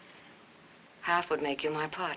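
A woman speaks softly and calmly close by.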